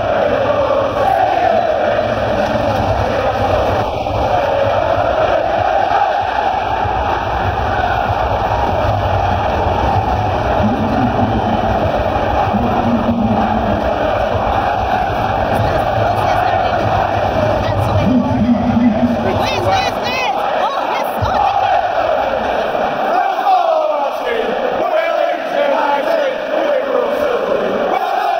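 A large stadium crowd sings loudly in unison, echoing under the stand roof.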